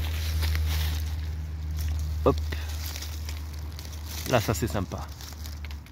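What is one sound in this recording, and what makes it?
Leaves rustle as a hand brushes through them.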